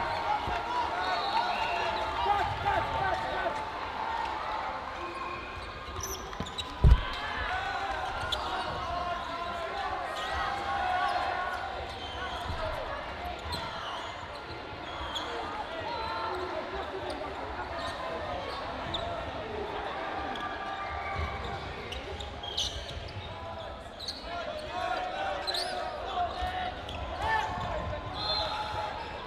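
Players call out to one another in a large echoing sports hall.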